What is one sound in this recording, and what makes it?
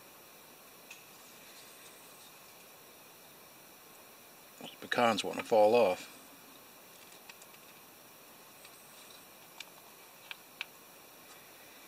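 A knife cuts softly through a cake.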